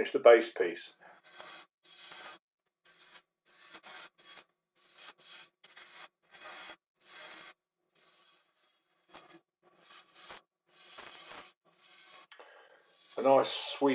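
A metal lathe tool scrapes and cuts in short bursts.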